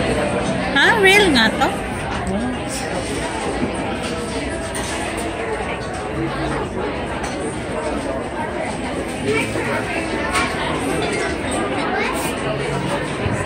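A crowd of people chatters in a busy, echoing room.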